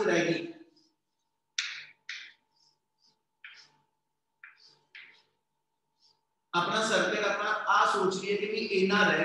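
A man speaks loudly and steadily, as if lecturing.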